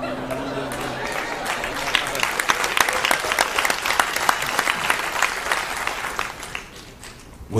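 An audience laughs and claps loudly.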